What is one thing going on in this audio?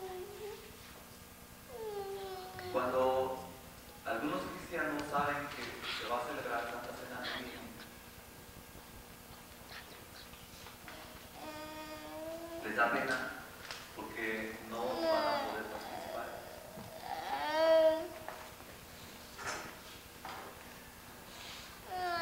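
A man speaks with feeling through loudspeakers in an echoing hall.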